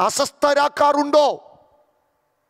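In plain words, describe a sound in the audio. A man speaks forcefully through a microphone.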